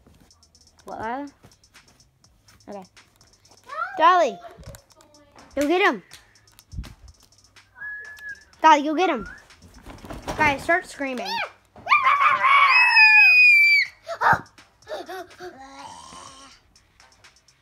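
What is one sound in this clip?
A young girl talks and squeals excitedly close by.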